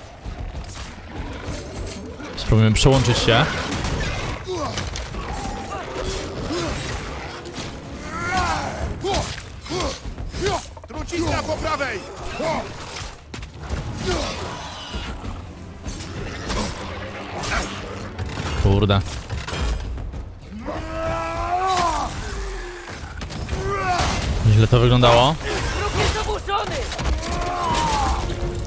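An axe lands heavy blows on enemies.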